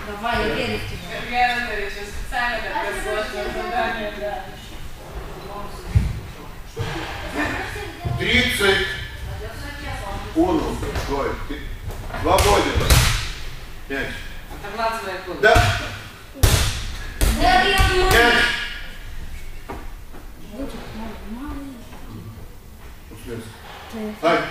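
Children talk and shout in a large echoing hall.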